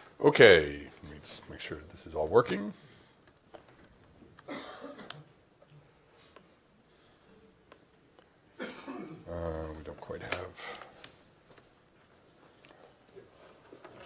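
Laptop keys click as someone types.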